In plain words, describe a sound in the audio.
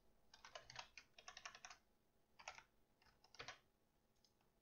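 Keys clatter on a computer keyboard in quick bursts.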